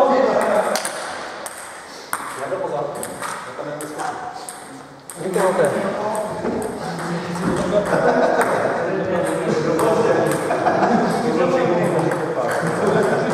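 Ping pong balls click on tables and paddles in an echoing hall.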